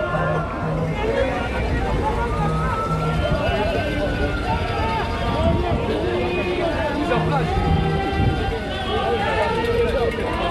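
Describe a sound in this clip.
A large outdoor crowd chatters and cheers loudly.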